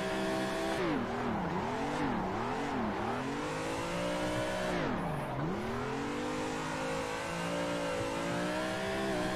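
A racing car engine roars, dropping in pitch as the driver shifts down, then revving up again.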